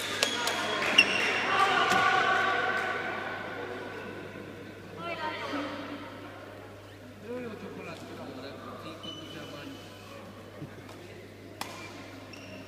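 A shuttlecock is hit with a racket, giving a sharp pop.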